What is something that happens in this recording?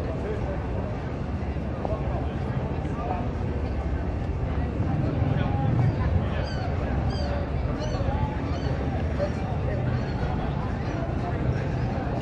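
A crowd of people chatters at outdoor tables.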